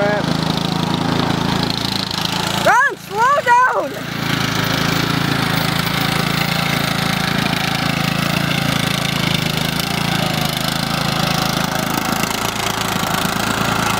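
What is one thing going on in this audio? A riding lawn mower engine drones as the mower drives.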